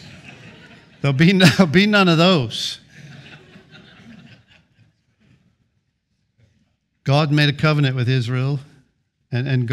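A middle-aged man speaks with feeling into a microphone in an echoing room.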